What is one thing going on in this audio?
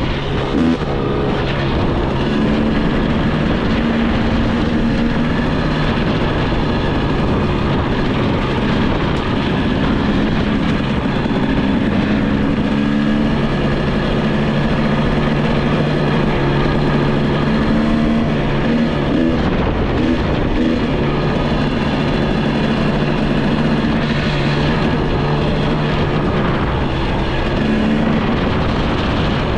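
A motorbike engine hums steadily up close, rising and falling in pitch.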